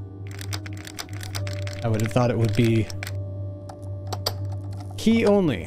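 Metal lock picks click and scrape in a lock.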